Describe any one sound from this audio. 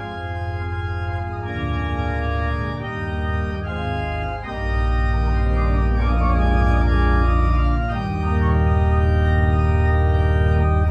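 A choir sings slow, sustained chords in a large echoing hall.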